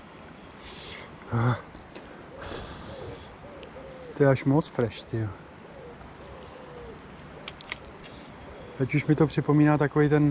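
A fishing reel whirs as its handle is turned.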